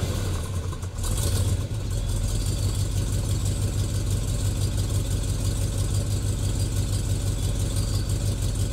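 A big car engine idles with a deep, throbbing rumble.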